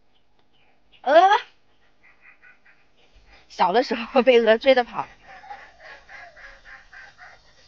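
Geese honk loudly nearby.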